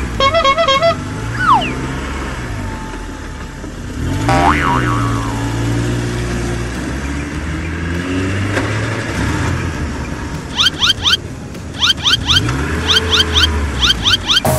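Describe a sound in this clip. A bus engine hums and revs as the bus drives.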